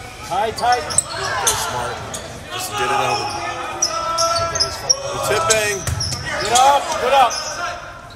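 Players shout and call out to each other in a large echoing gym.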